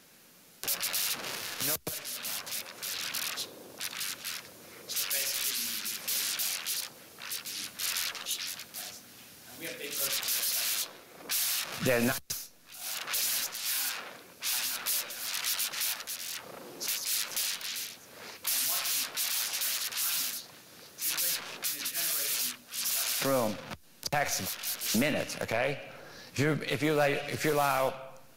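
An elderly man speaks with animation to an audience.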